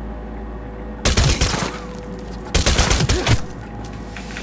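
Gunshots ring out in sharp, loud bursts.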